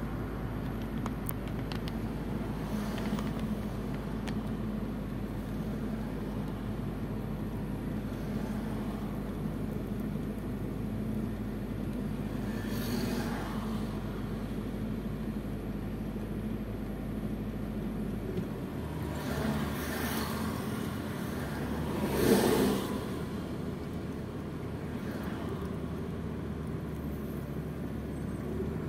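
A car engine idles with a low, steady hum from inside the car.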